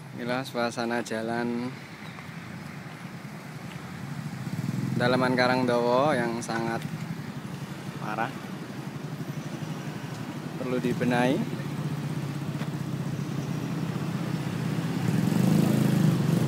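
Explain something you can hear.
Motor scooters ride past.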